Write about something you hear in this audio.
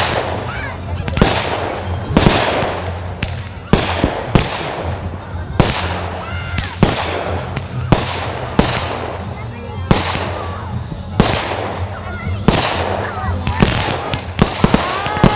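Fireworks burst with loud booming bangs outdoors.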